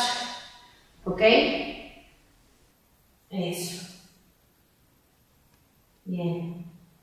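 A woman speaks clearly and calmly into a close microphone, in short phrases with pauses.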